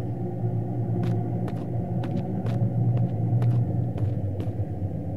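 Footsteps knock on wooden floorboards.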